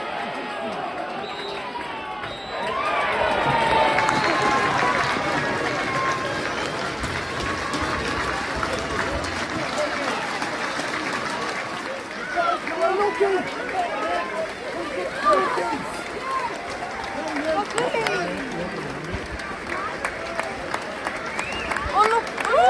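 A crowd of football fans chatters and shouts.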